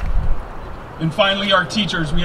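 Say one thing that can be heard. A man speaks into a microphone through loudspeakers.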